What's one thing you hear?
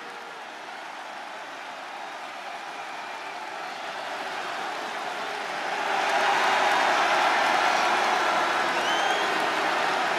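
A large crowd cheers and roars in a big echoing hall, swelling louder.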